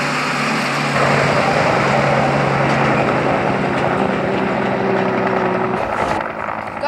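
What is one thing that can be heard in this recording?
A helicopter flies overhead with a thudding drone.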